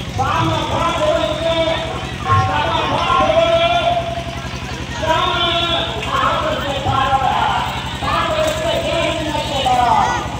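A group of women sing a chant together nearby.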